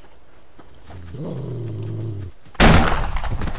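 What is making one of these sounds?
A wolf growls close by.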